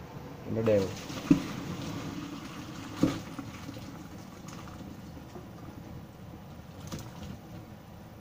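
Hot water pours and splashes into a metal strainer.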